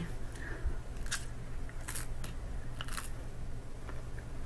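A woman crunches on raw broccoli.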